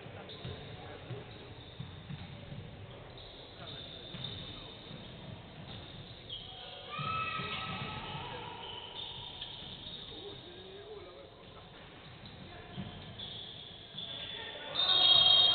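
A basketball bounces on the court with dull thumps.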